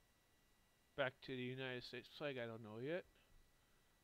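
A young man speaks briefly and thoughtfully into a headset microphone.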